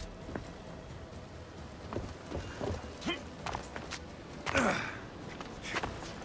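Footsteps thud and scuff on wooden boards and stone.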